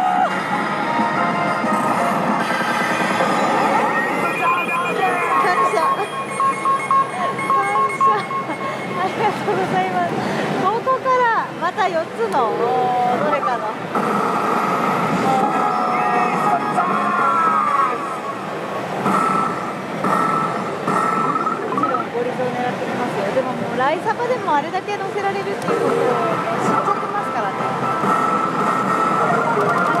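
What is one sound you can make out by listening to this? A slot machine plays loud electronic music and jingles.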